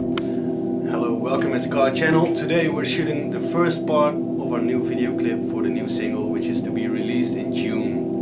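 A man speaks close by, calmly.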